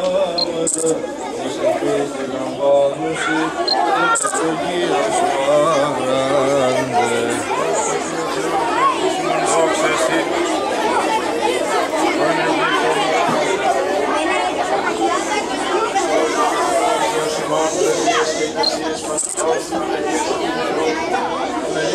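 An elderly man chants in a loud, steady voice outdoors.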